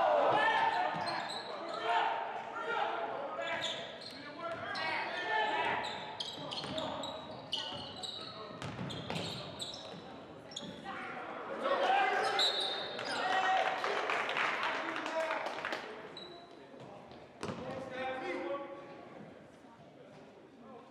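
Young men shout to one another in a large echoing gym.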